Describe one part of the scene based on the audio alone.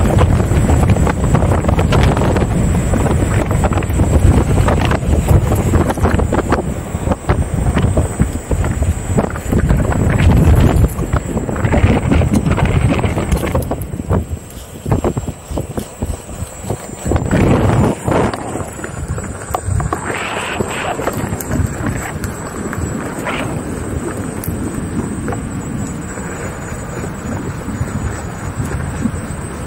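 Wind rushes and buffets against the microphone while riding.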